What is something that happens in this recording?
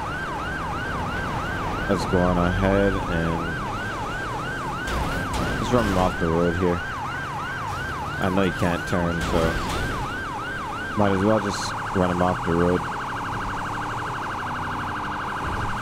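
A police siren wails steadily, then switches to a rapid yelp.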